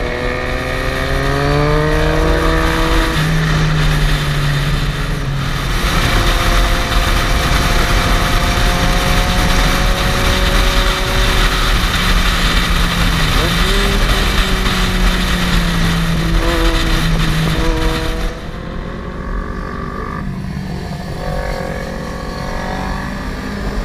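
Wind rushes loudly past a riding motorcycle, then eases as the ride slows.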